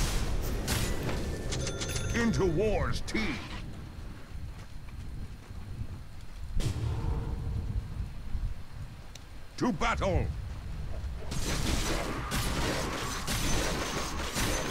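Weapons clash in a fight.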